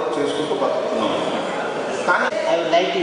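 A middle-aged man speaks into a microphone, heard through a loudspeaker.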